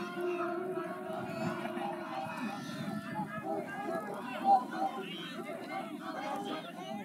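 A distant crowd cheers and shouts outdoors.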